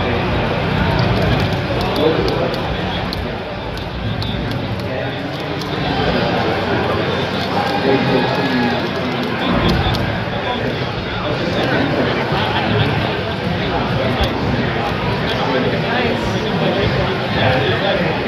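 A crowd of people chatters loudly all around in a large echoing hall.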